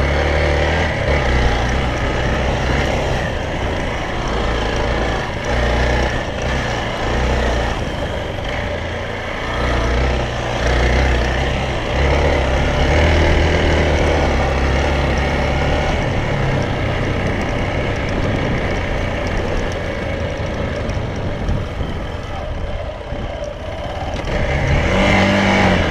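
A motorcycle engine hums and revs unevenly while riding.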